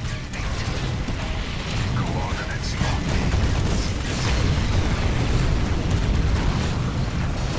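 Flamethrowers roar in bursts.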